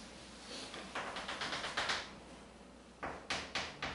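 Chalk taps and scratches quickly on a chalkboard.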